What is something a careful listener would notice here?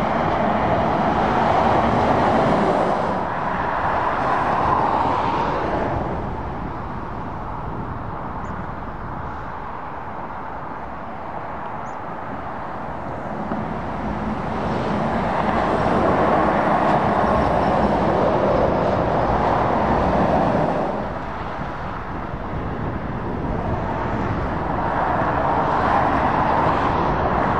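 Heavy lorries roar past close by on a highway, rising and fading.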